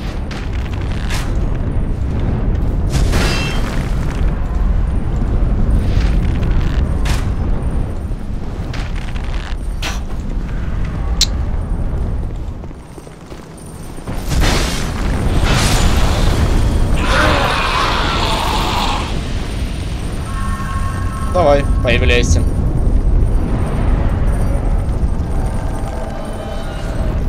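Wind roars steadily outdoors.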